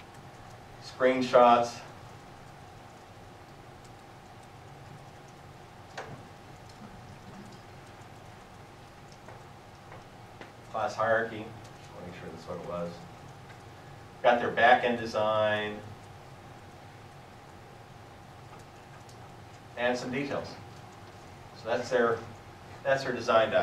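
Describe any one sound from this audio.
A man speaks in short bursts in a large room, with pauses between phrases.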